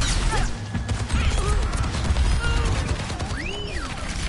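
A video game weapon fires in rapid bursts.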